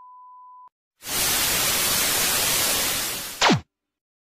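Television static hisses loudly.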